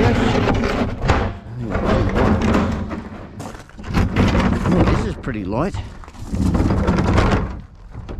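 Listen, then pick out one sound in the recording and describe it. Plastic wheelie bins rumble as they are rolled over gravel.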